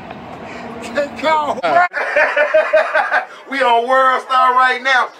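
A man raps rhythmically and loudly.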